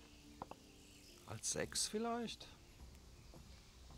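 Dice clatter onto a wooden board.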